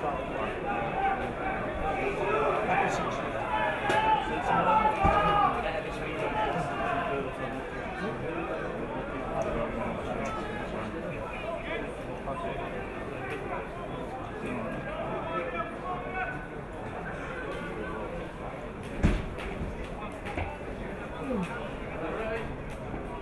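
A crowd of spectators chatters and calls out nearby outdoors.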